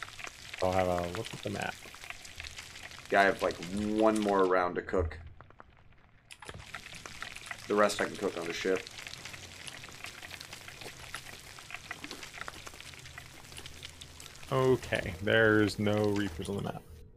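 Meat sizzles in frying pans.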